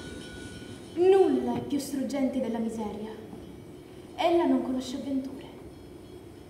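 A young woman speaks dramatically.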